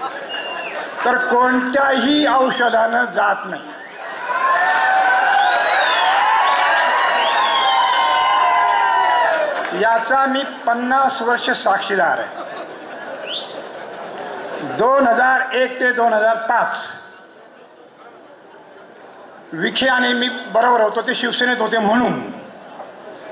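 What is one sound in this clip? An elderly man speaks steadily through a microphone, his voice ringing in a large room.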